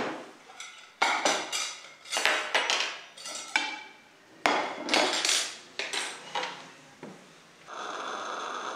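Knives and forks clatter onto a table.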